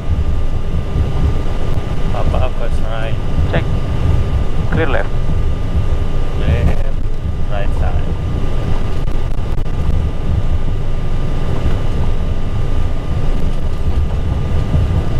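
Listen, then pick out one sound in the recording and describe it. A low engine rumble drones steadily throughout.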